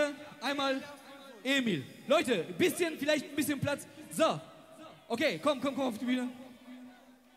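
A man shouts loudly through a microphone over a loudspeaker in a large echoing hall.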